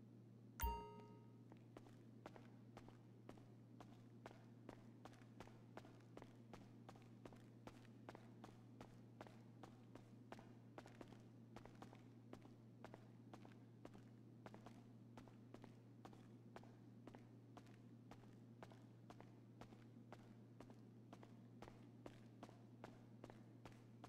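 Footsteps tap quickly on a hard, smooth floor.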